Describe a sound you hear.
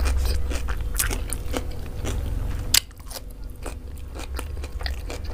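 A person chews food noisily and wetly, close to a microphone.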